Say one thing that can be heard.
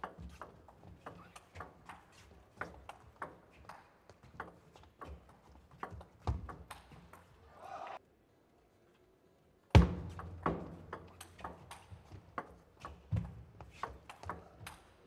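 A table tennis ball clicks back and forth off paddles and the table in a quick rally.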